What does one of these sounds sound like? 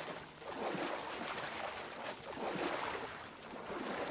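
Tall reeds rustle and swish as they are pushed aside.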